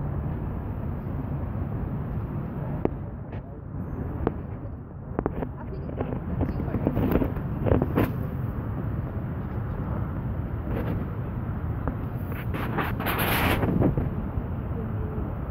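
Wind rumbles steadily against the microphone outdoors.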